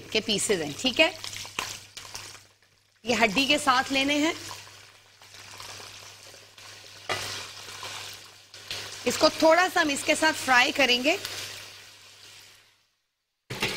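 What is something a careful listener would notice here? Chicken pieces sizzle in hot oil in a pan.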